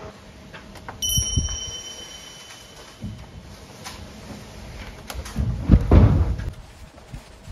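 A person handles objects, with knocks and rustles close by.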